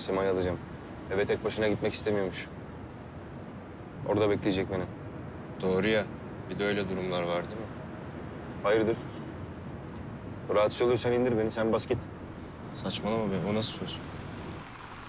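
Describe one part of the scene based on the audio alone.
Another young man answers in a low, quiet voice.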